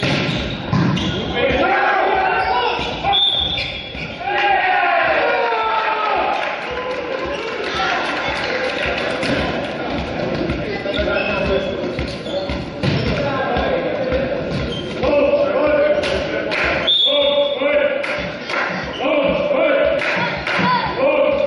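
Young men shout and cheer in a large echoing hall.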